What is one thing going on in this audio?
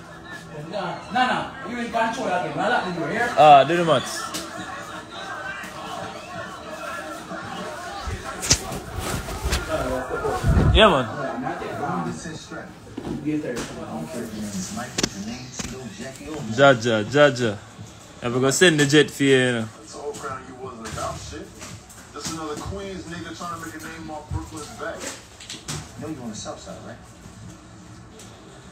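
A young man talks casually, close to a phone microphone.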